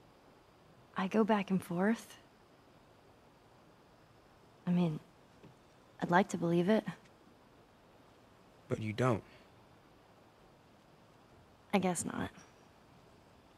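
A teenage girl speaks softly and thoughtfully, close by.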